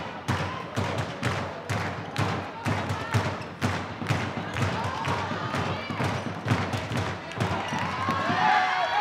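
A ball bounces with echoing thuds on a hall floor.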